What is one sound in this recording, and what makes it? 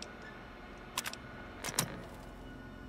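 Keys on a computer terminal click.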